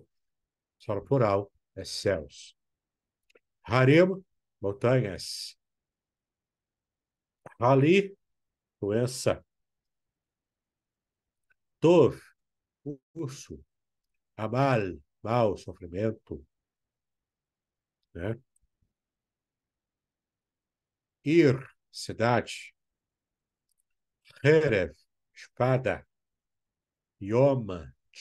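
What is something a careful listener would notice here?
A man speaks calmly and slowly through a microphone, with pauses.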